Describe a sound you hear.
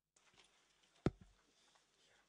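A microphone thumps as a hand knocks it.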